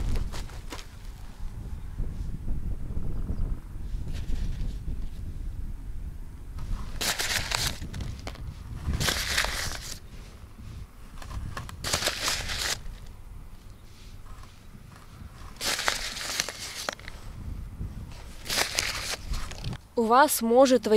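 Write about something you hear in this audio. Wind rumbles outdoors.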